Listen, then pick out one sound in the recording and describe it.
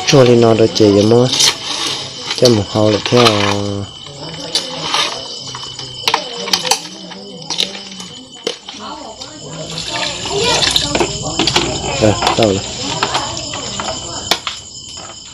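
Vegetables swish and clatter in a metal pot of water as they are stirred by hand.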